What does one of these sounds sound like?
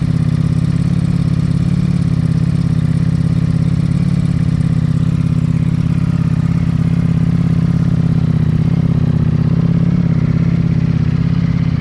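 A motorcycle engine idles with a loud, steady, throbbing rumble close by.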